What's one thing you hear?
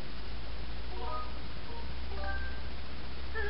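Soft electronic chimes ring briefly from a game.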